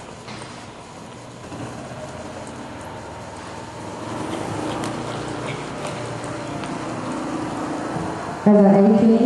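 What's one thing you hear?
Hooves thud on soft dirt as a horse gallops.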